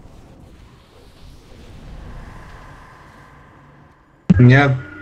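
Magic spells whoosh and crackle during a battle.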